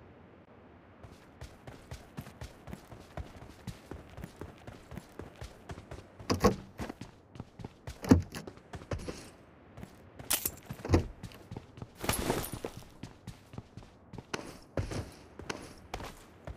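Footsteps thud quickly on grass and floors.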